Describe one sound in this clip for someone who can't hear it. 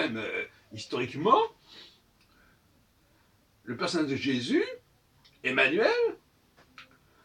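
An elderly man speaks calmly and expressively, close by, in short bursts with pauses.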